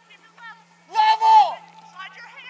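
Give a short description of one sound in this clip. A woman calls out loudly from a distance.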